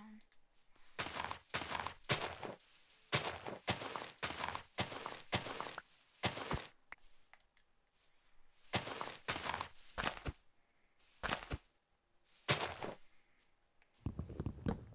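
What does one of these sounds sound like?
Wood is struck repeatedly with quick, dull chopping thuds.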